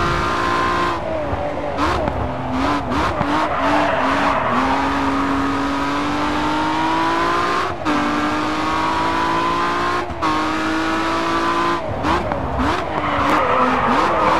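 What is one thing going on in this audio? Tyres screech as a car slides through a corner.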